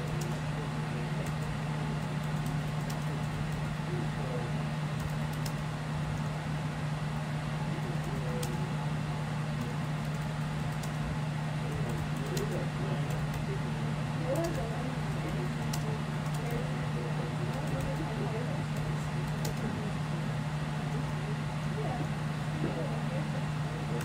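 Fingers tap quickly on a laptop keyboard.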